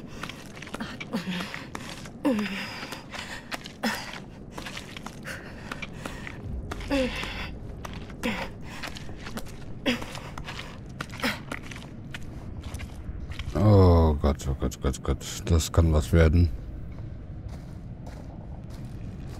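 Footsteps shuffle slowly on a gritty stone floor.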